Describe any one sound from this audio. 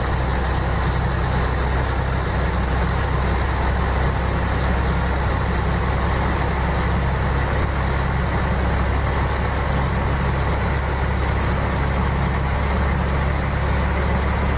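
A truck engine hums steadily as it drives along a highway.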